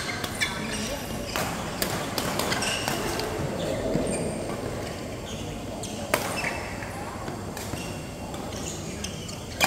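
Shuttlecocks are struck with rackets in sharp pops, echoing in a large hall.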